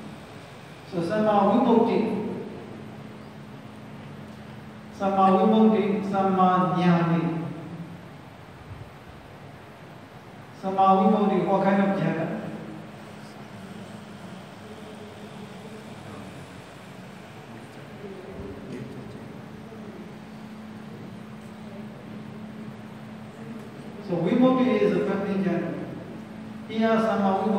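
A man speaks calmly in short phrases, in a large echoing hall.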